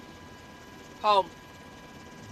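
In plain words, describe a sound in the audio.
A woman answers calmly.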